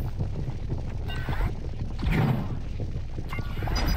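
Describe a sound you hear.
A game blaster zaps with a humming shot.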